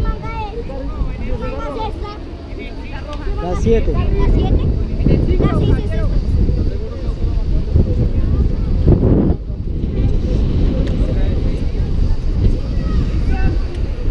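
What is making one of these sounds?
A crowd of people chatter in the distance.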